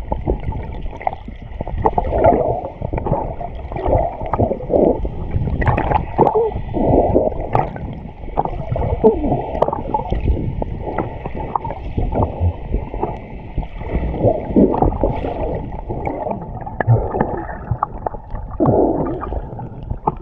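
Water swirls and bubbles, muffled underwater.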